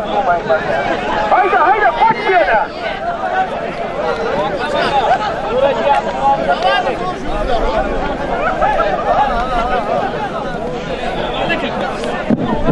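A crowd of men shouts and calls out loudly outdoors.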